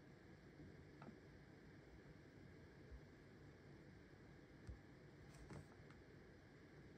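Fingertips tap lightly on a glass touchscreen.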